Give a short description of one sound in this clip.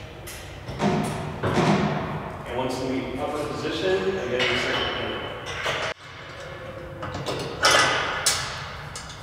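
Metal parts of a machine clank and rattle as they are handled.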